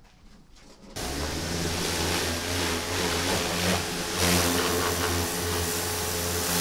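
A pressure washer motor hums steadily.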